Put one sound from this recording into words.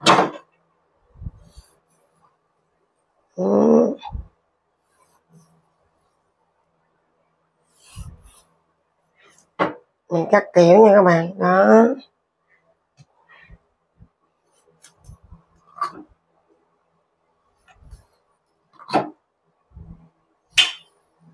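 A knife cuts into raw fish with soft taps on a board.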